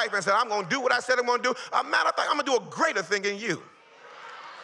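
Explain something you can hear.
A man preaches loudly and with animation into a microphone, heard through loudspeakers.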